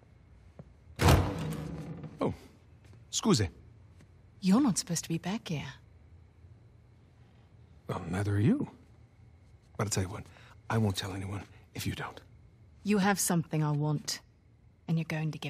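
A woman speaks softly and teasingly.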